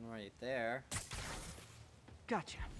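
Electricity crackles and sparks.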